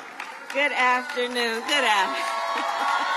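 A woman close by screams with excitement.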